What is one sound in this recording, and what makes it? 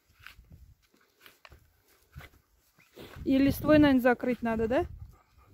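A shovel scrapes and crunches into dry soil.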